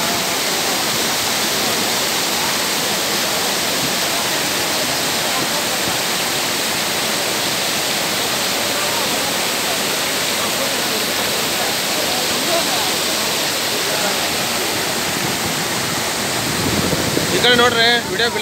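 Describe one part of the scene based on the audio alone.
Floodwater rushes and roars loudly close by.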